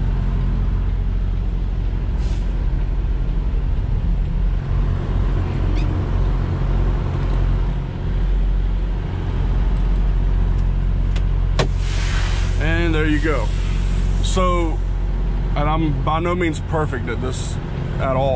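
A truck's diesel engine rumbles steadily at idle.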